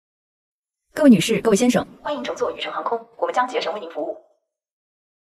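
A young man announces loudly in a showy voice.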